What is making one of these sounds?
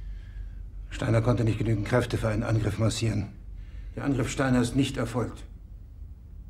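A middle-aged man speaks calmly.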